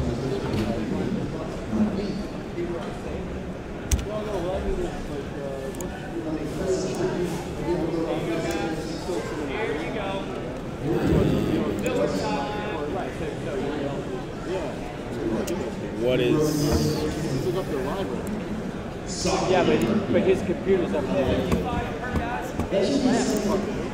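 A man talks calmly and casually into a nearby microphone.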